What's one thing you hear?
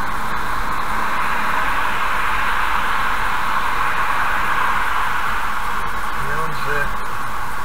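A lorry roars past close by, growing louder and then fading.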